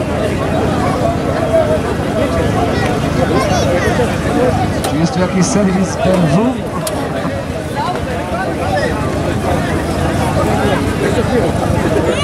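A large outdoor crowd chatters.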